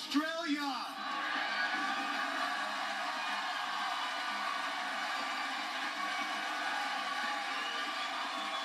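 A large crowd cheers and applauds loudly.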